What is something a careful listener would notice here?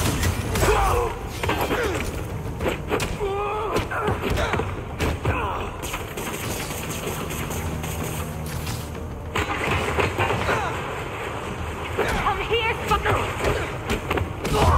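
Punches and kicks land with heavy thuds in a brawl.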